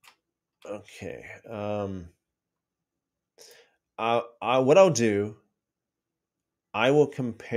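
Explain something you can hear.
A middle-aged man speaks calmly and thoughtfully, close to a microphone.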